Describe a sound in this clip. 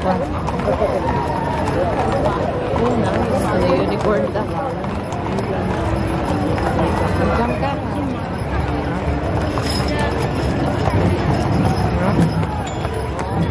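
Wooden wagon wheels rumble past.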